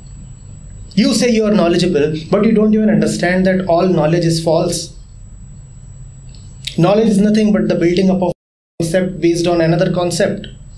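A man speaks calmly and thoughtfully, close to a microphone.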